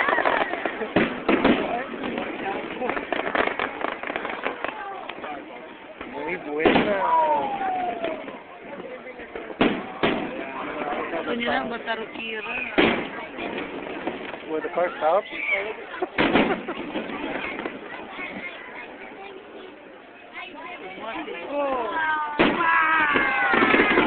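A crowd of onlookers cheers and chatters outdoors.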